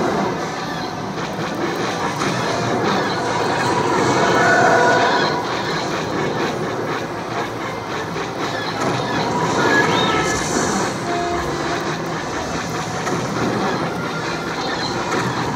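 An arcade shooting game blares loud music and laser blasts from its speakers.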